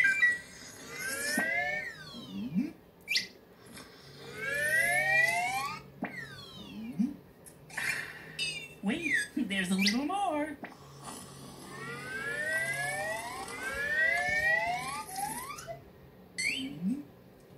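Liquid slurps and whooshes through a long straw in quick rising swoops.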